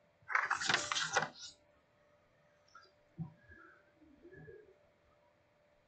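A pen scratches and scribbles on paper.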